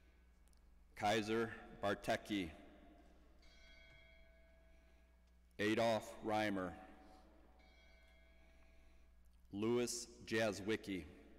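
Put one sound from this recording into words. A man reads out slowly through a microphone in a large echoing hall.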